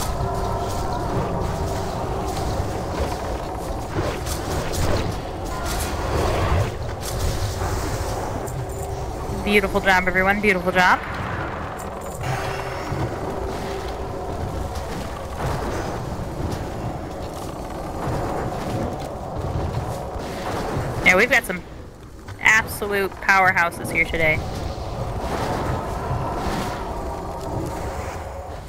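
Spells and weapons clash and crackle in a fantasy battle.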